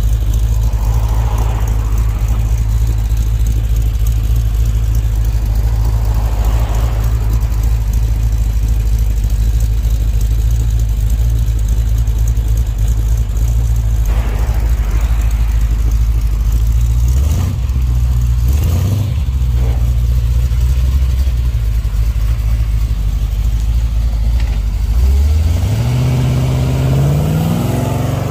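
A classic car's engine idles with a deep, steady rumble.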